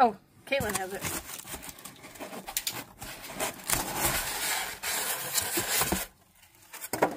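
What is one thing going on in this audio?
Styrofoam squeaks and rubs as it is lifted from a cardboard box.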